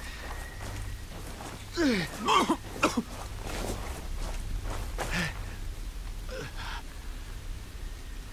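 Footsteps crunch over leaves and undergrowth.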